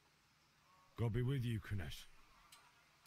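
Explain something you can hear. A man says a short farewell calmly, close by.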